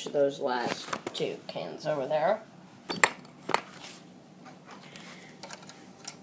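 A small plastic toy car clicks and knocks on a wooden floor.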